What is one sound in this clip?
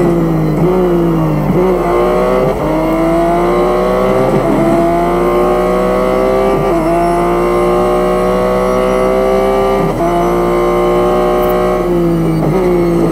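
A racing car engine roars loudly, rising in pitch and dropping sharply with each gear change.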